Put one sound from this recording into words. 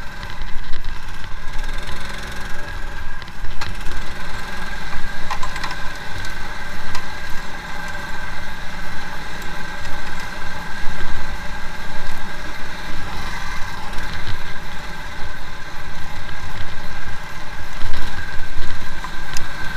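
A motorbike engine drones steadily.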